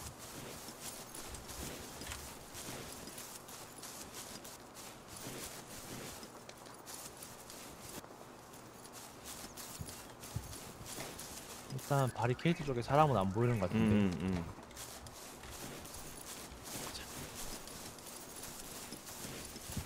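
Footsteps crunch steadily over grass and gravel.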